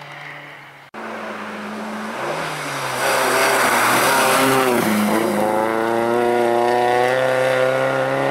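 A rally car engine roars closer, revving up and down as it speeds past.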